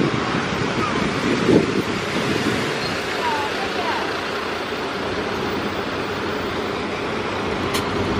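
A bus engine rumbles as the bus pulls away.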